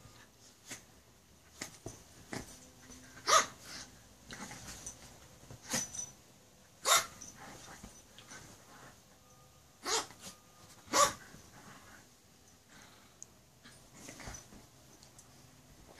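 Two small dogs growl playfully.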